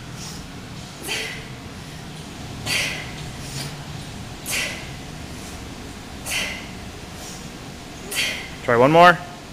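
A young woman breathes out sharply and rhythmically, close by.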